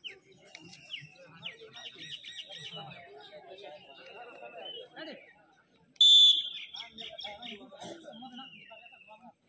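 A crowd of young men chatters outdoors at a distance.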